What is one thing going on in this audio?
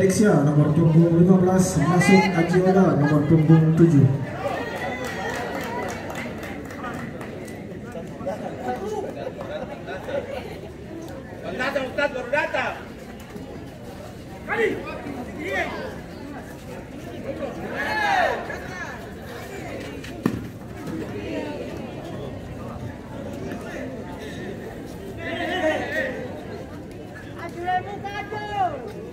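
A crowd of spectators chatters and cheers in a large open space.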